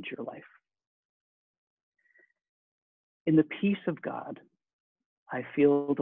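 A middle-aged man speaks calmly into a microphone, heard as if over an online call.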